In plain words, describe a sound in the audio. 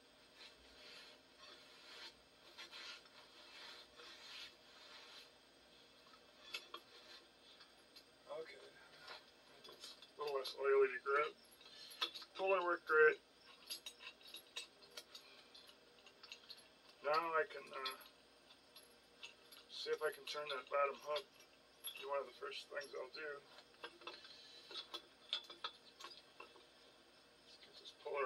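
Metal tools clink and scrape against a heavy metal part.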